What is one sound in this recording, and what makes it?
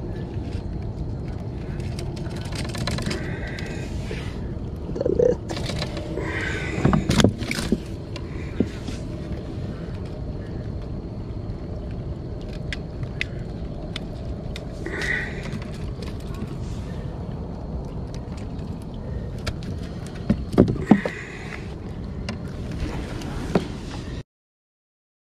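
Light rain patters on water and a plastic kayak.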